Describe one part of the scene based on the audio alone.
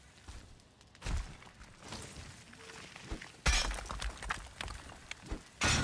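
A pickaxe strikes rock with heavy, crunching thuds.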